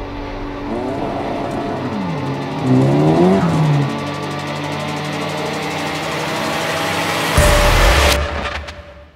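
A car drives along a road.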